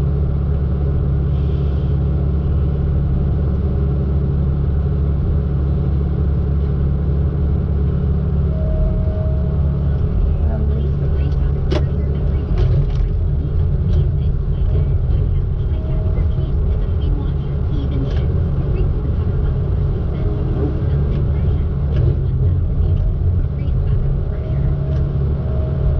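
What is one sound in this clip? A heavy diesel engine drones steadily close by.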